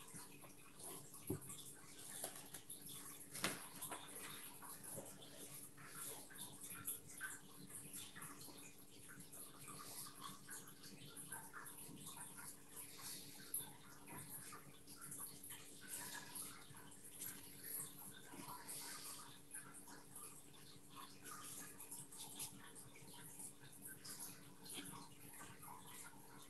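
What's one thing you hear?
A brush scratches and taps softly on paper.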